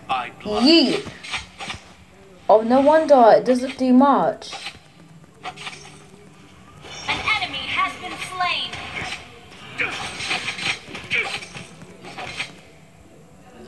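Sword clashes and magic blasts ring out in a fast video game battle.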